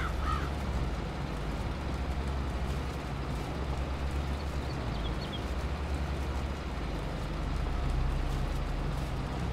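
A harvester clatters as it digs up crops.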